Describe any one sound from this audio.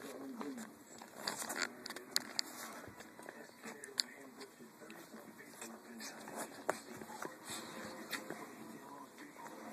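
A dog sniffs and licks noisily up close.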